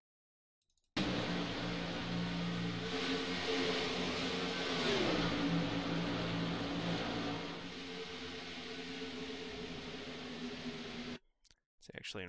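Race car engines drone steadily and shift pitch.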